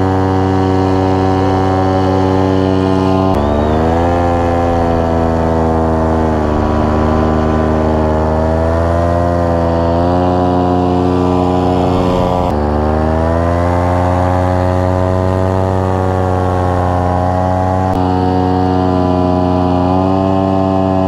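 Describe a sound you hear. A paramotor engine drones loudly and steadily, its pitch rising and falling.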